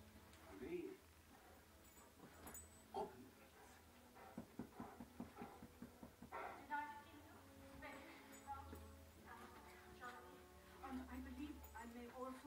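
A puppy yelps and whines during play.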